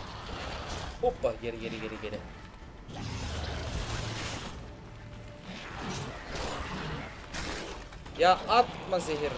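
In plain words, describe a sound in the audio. Monsters snarl and screech.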